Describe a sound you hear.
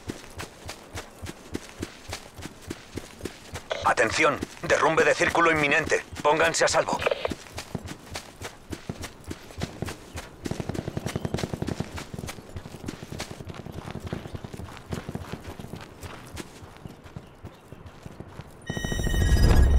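Footsteps thud quickly and evenly on grass and dirt.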